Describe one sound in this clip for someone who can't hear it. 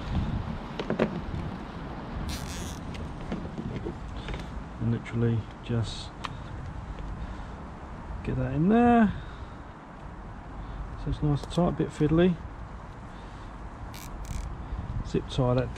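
A plastic cable tie ratchets as it is pulled tight.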